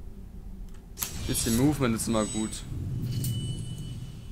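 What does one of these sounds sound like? A bright swelling chime rings out as a skill unlocks.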